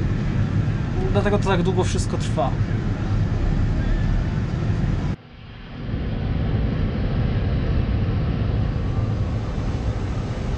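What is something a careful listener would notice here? A tractor engine drones steadily, heard from inside its cab.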